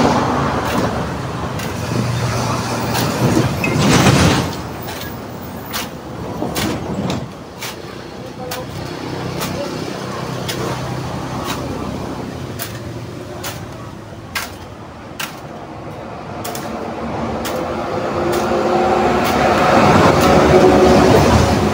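A hoe scrapes and thuds into dry soil again and again.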